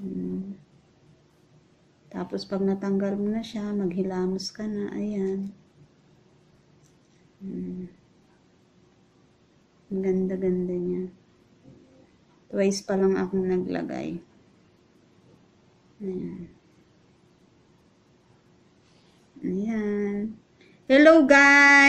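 A woman talks calmly, close to the microphone, in short bursts with pauses.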